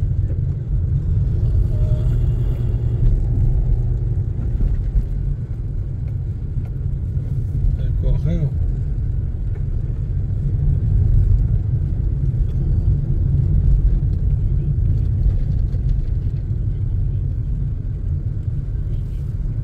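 A car engine hums steadily from inside the car as it drives along a street.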